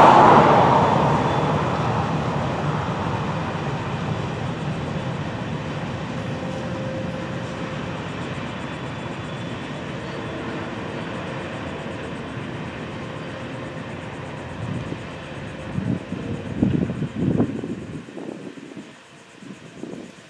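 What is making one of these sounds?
A diesel locomotive rumbles past close by and fades into the distance.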